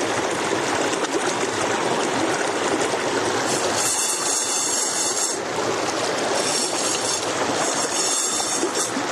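A shallow stream rushes and splashes steadily close by.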